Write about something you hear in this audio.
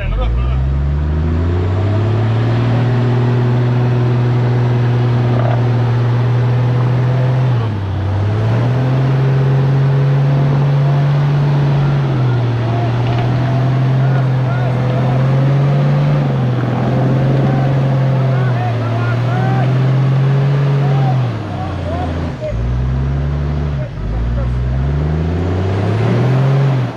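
An engine revs hard and roars loudly, rising and falling.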